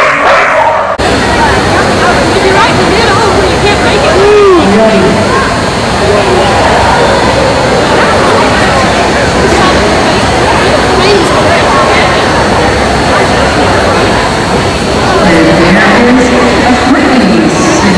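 A crowd murmurs in a large indoor arena.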